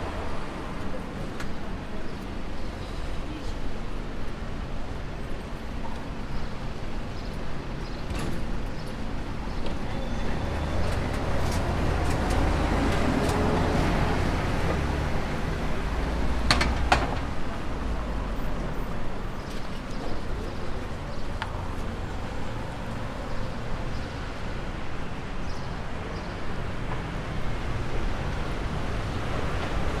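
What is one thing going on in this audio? Traffic hums steadily outdoors in a city street.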